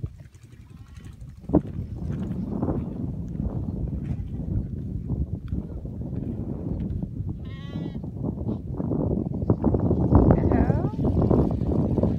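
A large herd of sheep and goats bleats nearby.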